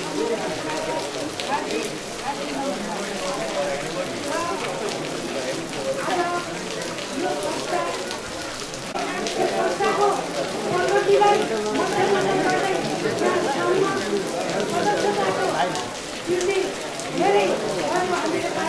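A middle-aged woman speaks steadily into a microphone, heard through a loudspeaker.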